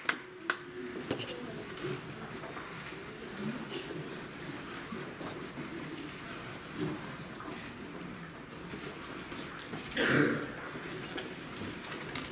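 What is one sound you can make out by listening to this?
Singers shuffle and murmur quietly as they move about.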